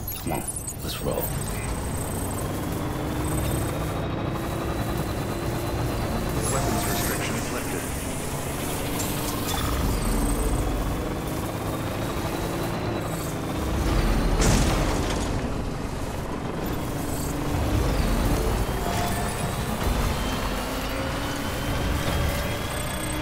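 Tyres crunch and bump over rough ground.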